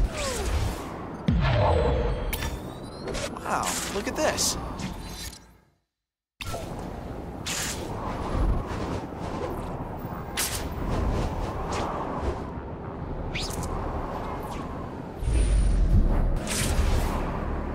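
Wind rushes past in a steady roar.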